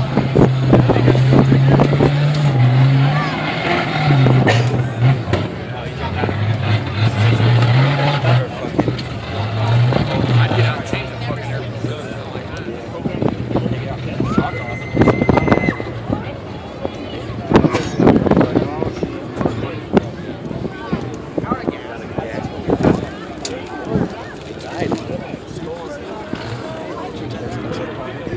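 A crowd of spectators outdoors chatters and cheers nearby.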